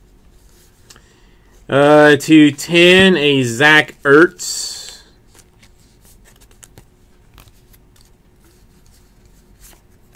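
Trading cards are shuffled in the hands.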